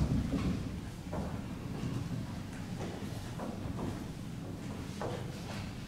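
Footsteps cross a wooden floor.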